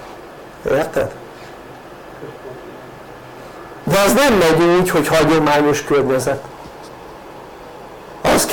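An elderly man speaks calmly and clearly, close by.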